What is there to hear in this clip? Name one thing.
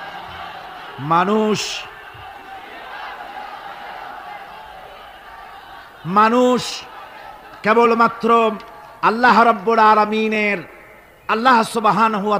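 A man chants in a drawn-out, melodic voice.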